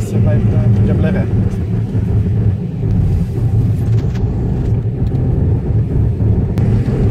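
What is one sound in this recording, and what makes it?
Tyres roll over a wet road.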